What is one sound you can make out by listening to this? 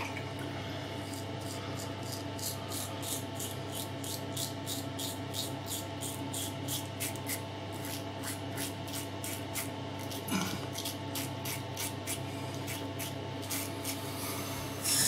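A razor scrapes through stubble in short, quick strokes.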